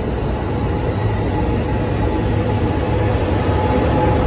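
A locomotive engine drones loudly as it passes, growing louder toward the end.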